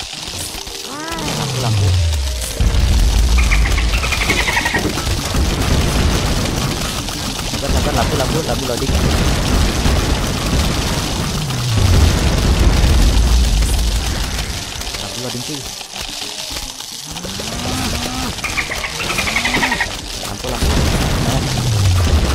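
A whistling object drops with a falling pitch.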